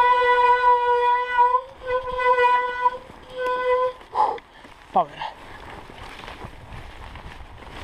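A bicycle frame rattles over bumps.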